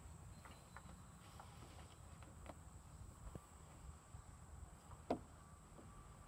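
Hands and feet knock and creak on a wooden climbing frame.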